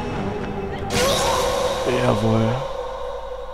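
A sword strikes with a loud ringing clang.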